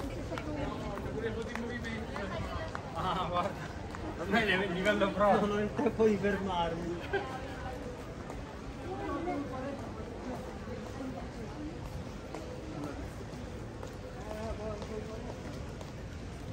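Men and women chatter and talk nearby outdoors.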